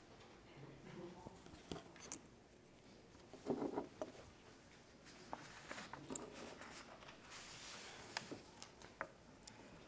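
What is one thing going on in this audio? An elderly woman speaks calmly.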